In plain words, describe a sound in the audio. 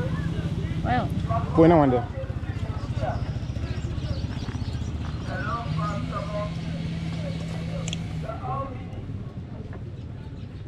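Peanuts rustle and clatter on a cloth.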